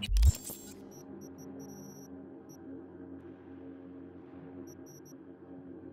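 Short electronic menu beeps sound in quick bursts.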